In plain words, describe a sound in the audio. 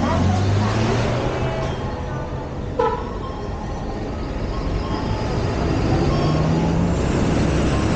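A bus drives past with a low engine hum.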